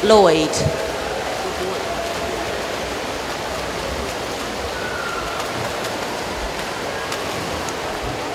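Swimmers splash steadily through the water.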